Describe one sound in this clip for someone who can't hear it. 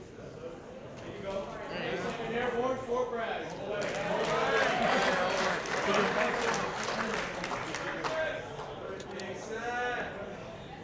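A man speaks loudly and clearly to a crowd.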